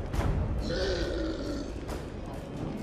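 A creature groans and moans.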